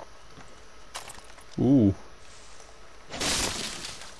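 Leaves rustle as someone pushes through foliage.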